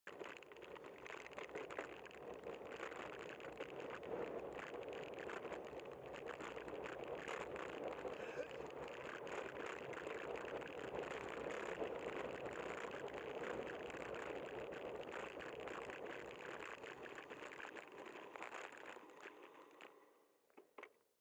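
Wind rushes and buffets loudly, then dies away.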